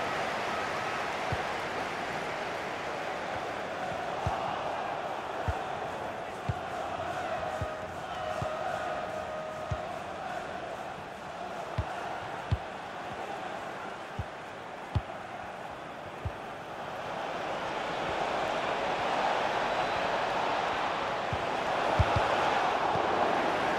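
A stadium crowd roars steadily and swells louder toward the end.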